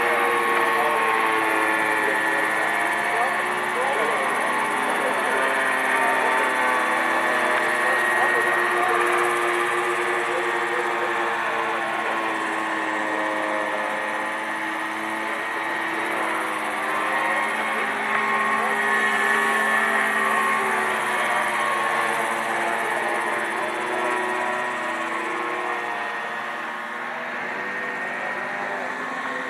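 Model helicopter rotor blades whir and chop the air.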